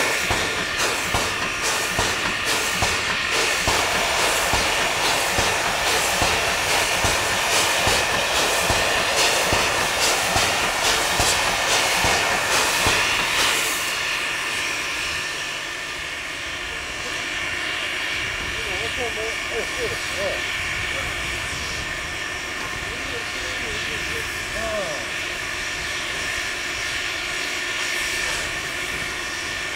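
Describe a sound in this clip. Steam hisses steadily from a locomotive.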